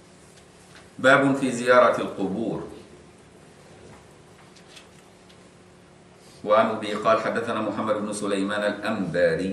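An elderly man recites in a slow, melodic chant into a microphone.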